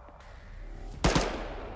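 A rifle fires a single loud shot close by.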